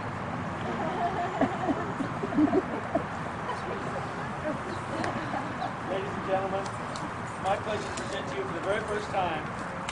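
A crowd of people laughs outdoors.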